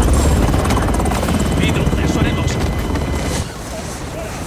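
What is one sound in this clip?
A helicopter engine rumbles loudly from inside the cabin, then drops away.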